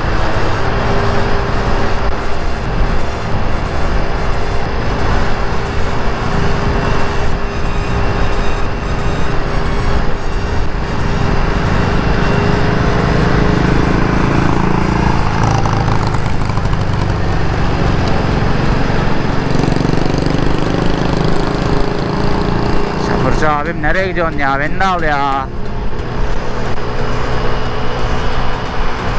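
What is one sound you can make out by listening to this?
A scooter engine hums steadily close by.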